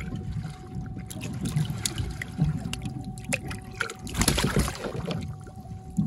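A fish splashes and thrashes in water.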